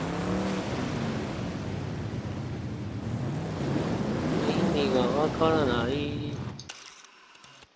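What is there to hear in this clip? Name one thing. Water splashes and sprays under rolling tyres.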